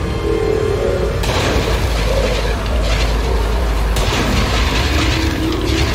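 A spacecraft engine hums low and steadily.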